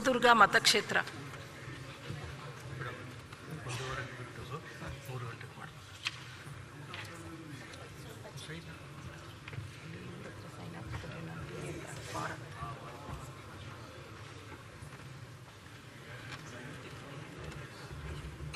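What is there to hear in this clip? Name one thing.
A crowd murmurs quietly in a large hall.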